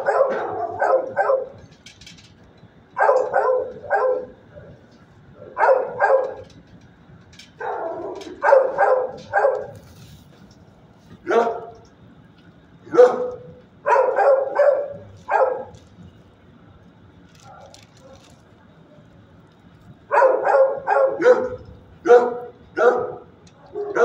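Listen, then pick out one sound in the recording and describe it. A dog barks in short bursts in an echoing room.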